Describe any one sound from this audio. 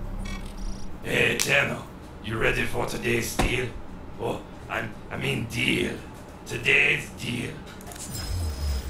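A young man talks into a microphone close by.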